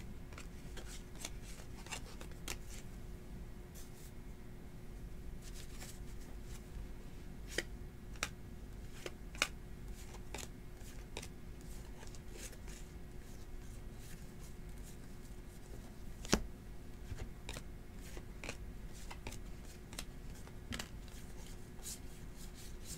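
Trading cards flick and slap softly as they are shuffled by hand.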